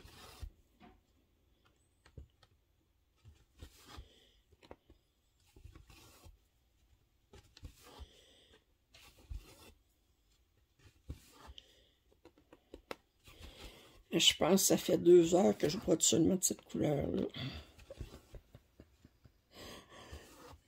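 A needle and thread rustle softly through stiff fabric.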